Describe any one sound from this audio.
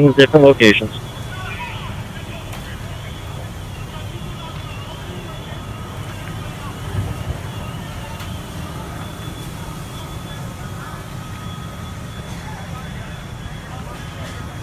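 A large fire roars outdoors with a low, steady rumble.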